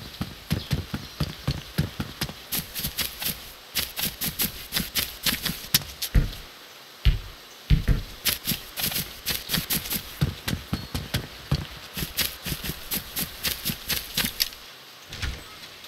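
Footsteps thud quickly.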